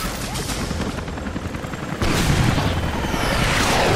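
A helicopter roars overhead.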